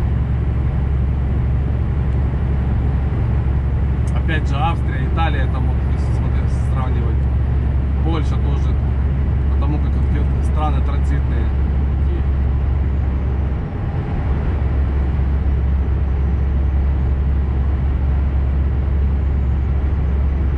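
A vehicle's engine hums steadily at highway speed.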